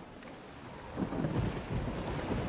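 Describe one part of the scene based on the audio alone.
Waves splash and surge against a ship's hull.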